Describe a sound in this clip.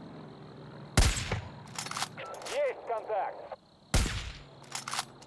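A rifle fires loud, sharp shots that echo away.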